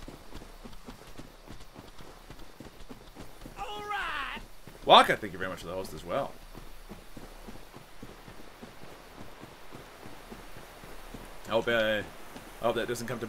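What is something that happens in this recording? Footsteps patter quickly over soft ground.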